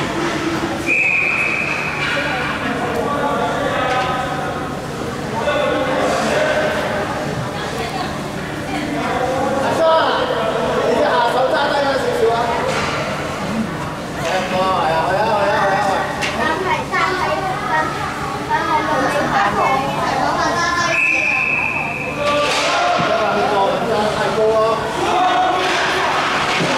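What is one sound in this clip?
Skate blades scrape across ice in a large echoing rink.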